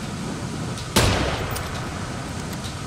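A sniper rifle fires a single sharp shot.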